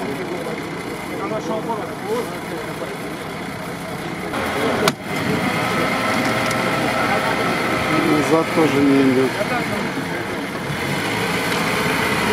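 A crowd of spectators chatters nearby, outdoors.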